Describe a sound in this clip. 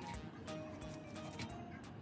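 A knife slices through soft meat.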